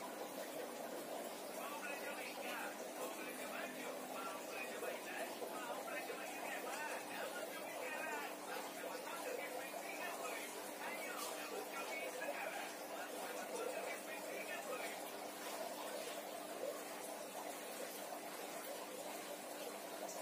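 A coin scrapes over oiled skin on a back.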